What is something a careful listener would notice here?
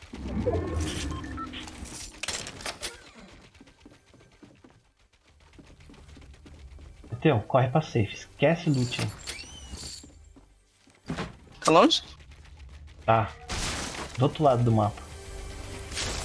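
Footsteps thud quickly on wooden floors.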